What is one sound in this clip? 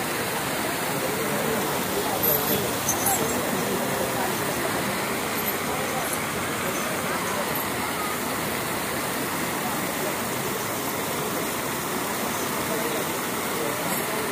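Water sprays and splashes steadily.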